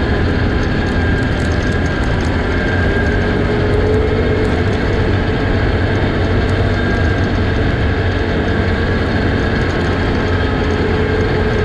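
A vehicle engine drones steadily up close.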